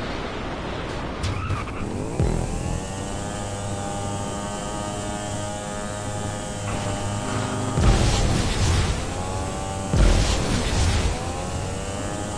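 A motorcycle engine revs loudly and steadily.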